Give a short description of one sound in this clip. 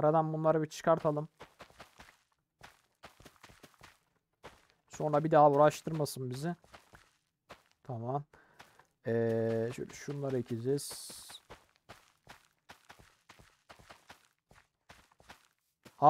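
Seeds are planted into soil with soft, quick thuds.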